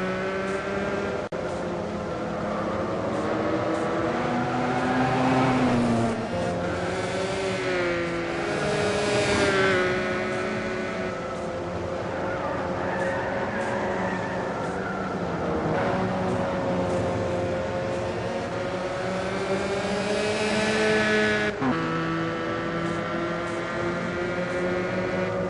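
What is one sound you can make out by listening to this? A racing car engine roars at high revs, rising and falling in pitch as it shifts gears.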